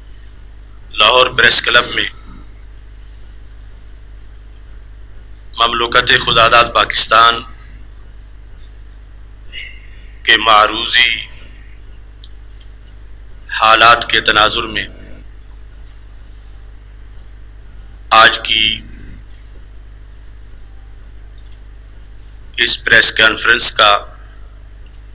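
An elderly man speaks into a microphone in short bursts with long pauses, heard through a loudspeaker in an echoing room.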